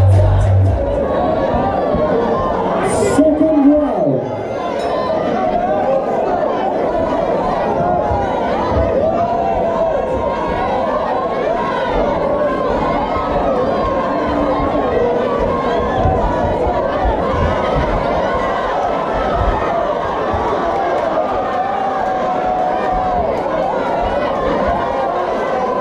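A large crowd chatters and shouts in a big echoing hall.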